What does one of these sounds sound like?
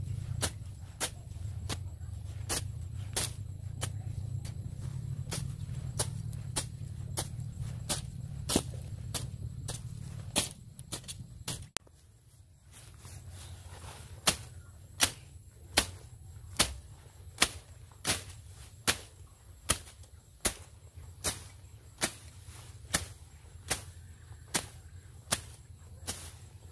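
A machete chops into plants on the ground with regular blows.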